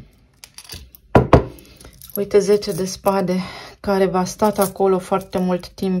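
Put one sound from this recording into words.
Metal charms clink together in a hand.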